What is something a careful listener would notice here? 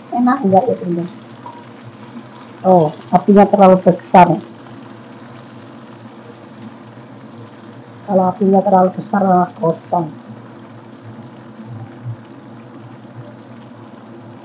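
Metal tongs clink against a frying pan.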